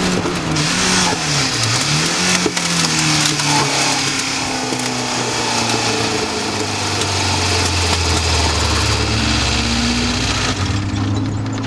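A racing car engine roars close by, rising and falling in pitch as it changes gear.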